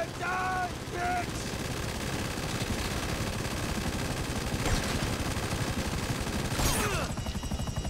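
Helicopter rotors thump steadily and loudly.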